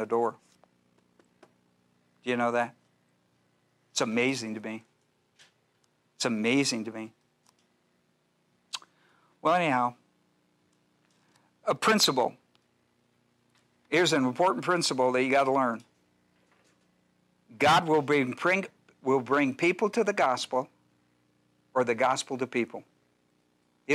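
An elderly man speaks calmly in short phrases with pauses, heard through a microphone.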